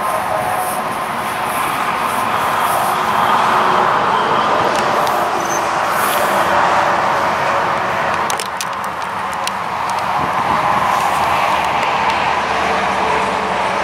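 A warning siren wails loudly, slowly rising and falling in pitch.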